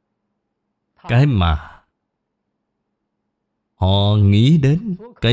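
An elderly man speaks calmly and close to a microphone.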